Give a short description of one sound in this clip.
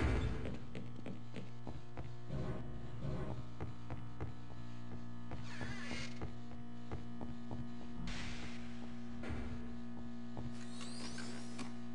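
Footsteps clank on a hard floor at a steady walking pace.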